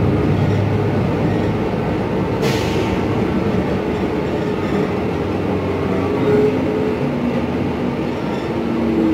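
A bus interior rattles and creaks as it moves.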